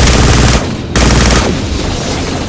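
A rifle fires a loud rapid burst.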